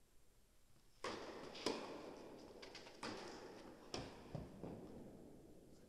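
A tennis ball is struck with a racket and bounces, echoing in a large indoor hall.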